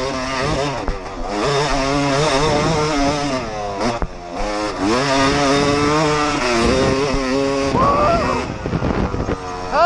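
A dirt bike engine revs up and down loudly.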